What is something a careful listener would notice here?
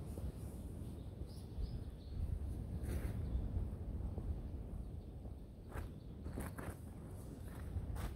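Footsteps crunch on dry straw.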